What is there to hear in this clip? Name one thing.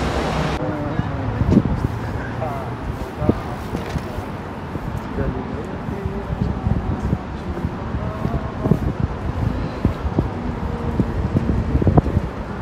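Traffic rumbles steadily along a busy street.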